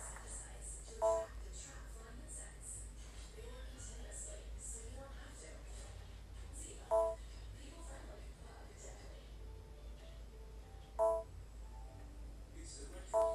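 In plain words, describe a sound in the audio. A handheld game console plays short bright chimes now and then.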